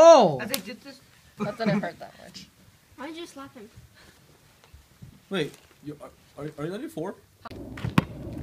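A teenage boy laughs and talks quietly close by.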